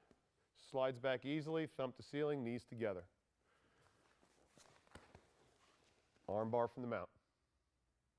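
A man speaks calmly and clearly into a microphone, in short bursts.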